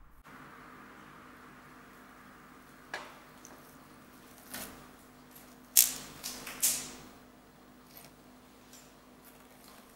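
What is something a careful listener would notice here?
Slime squishes and pops stickily under pressing fingers.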